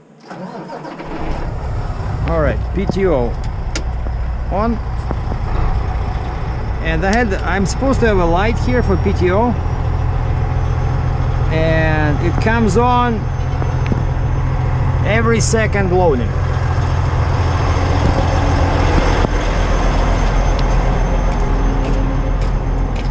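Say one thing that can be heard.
A diesel truck engine rumbles steadily close by.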